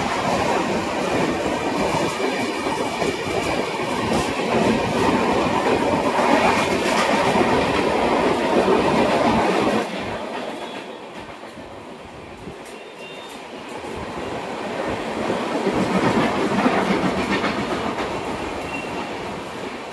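A crowd murmurs along a station platform.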